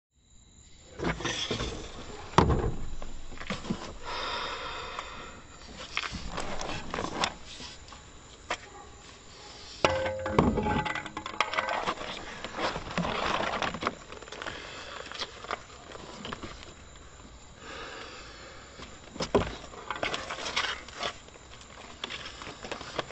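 Objects knock and clatter as they are handled.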